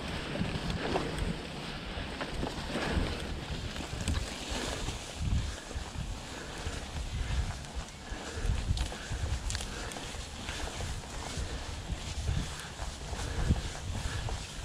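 Wind rumbles against a microphone.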